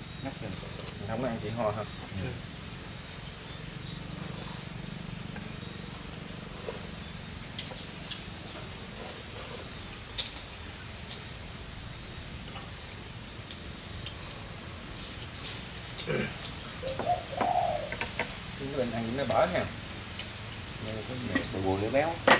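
Men talk casually at close range.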